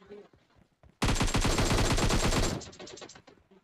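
An automatic rifle fires a loud, rapid burst.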